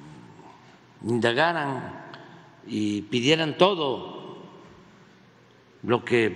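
An elderly man speaks calmly and slowly into a microphone.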